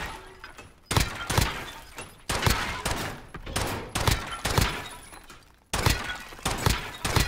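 A pistol fires repeated shots that echo through a large hall.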